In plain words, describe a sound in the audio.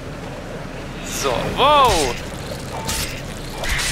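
A blade swishes through the air in quick slashes.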